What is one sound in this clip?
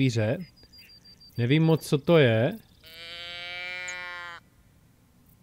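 A handheld animal call is blown in a few bleating bursts, then one long steady note.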